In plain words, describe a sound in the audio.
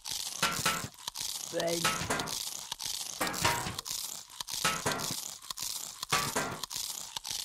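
Small peas pop as they are fired.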